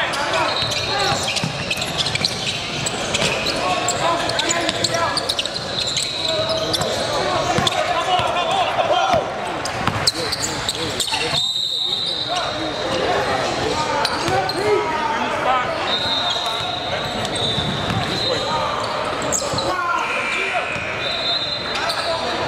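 A crowd of spectators and players chatters and calls out in a large echoing hall.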